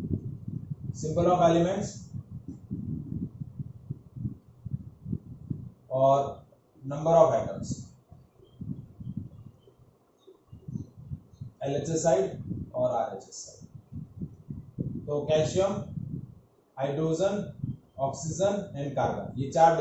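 A young man speaks calmly and explains, close to a microphone.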